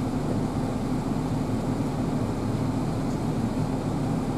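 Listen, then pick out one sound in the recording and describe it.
Footsteps walk on a hard floor nearby.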